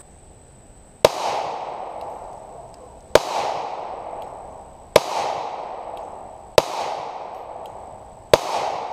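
A pistol fires single shots that echo outdoors.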